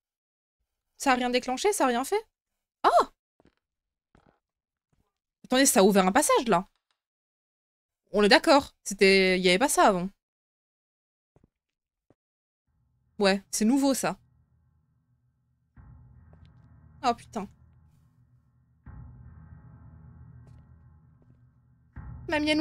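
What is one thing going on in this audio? A young woman speaks close into a microphone.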